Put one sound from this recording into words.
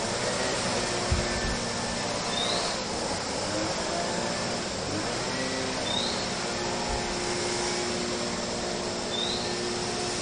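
A leaf blower roars steadily.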